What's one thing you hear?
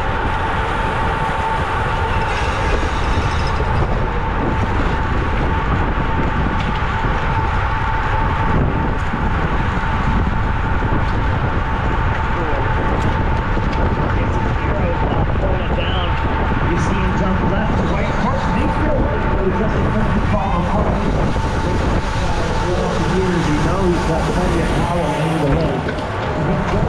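Wind rushes loudly past at speed, outdoors.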